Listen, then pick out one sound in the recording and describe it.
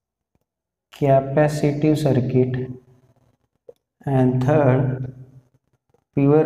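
A man speaks calmly, close by, in short phrases.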